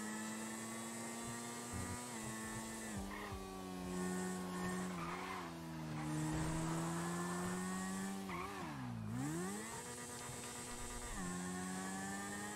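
A motorcycle engine drones steadily, its pitch shifting as it changes gear.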